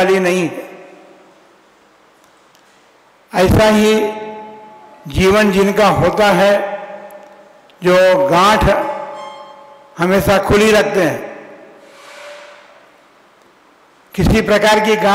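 An elderly man speaks slowly and deliberately into a microphone, in short phrases with pauses, in a room with a slight echo.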